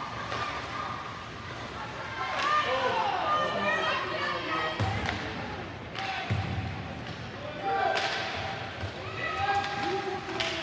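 Children shout and cheer in a large echoing rink.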